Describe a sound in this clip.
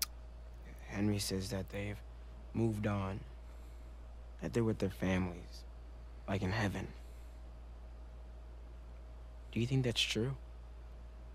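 A young man speaks into a close microphone in short bursts.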